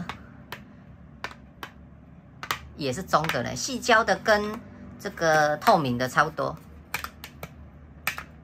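Plastic phone cases tap and clatter on a wooden table.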